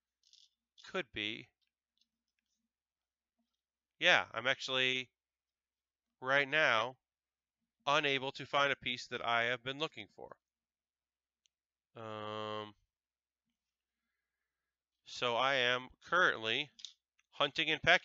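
A middle-aged man talks with animation into a close headset microphone, in short bursts.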